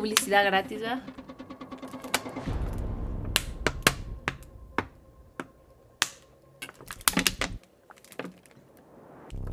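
A plastic water bottle crackles and crinkles close by.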